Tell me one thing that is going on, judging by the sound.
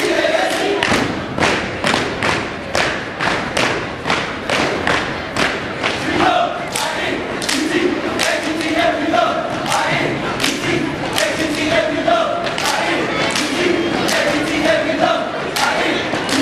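A group stomps and claps in a sharp rhythm, echoing in a large hall.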